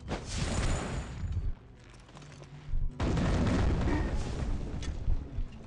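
Swords clash and slash in a noisy battle.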